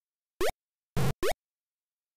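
A burst of harsh electronic noise from a retro video game sounds briefly.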